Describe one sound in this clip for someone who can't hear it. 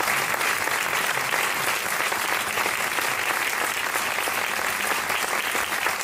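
An audience applauds loudly in a large echoing hall.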